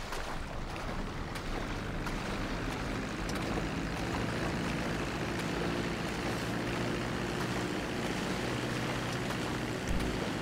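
Water sprays and churns under a plane's floats.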